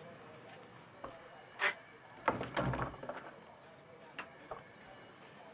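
Objects knock and clatter on a wooden surface close by.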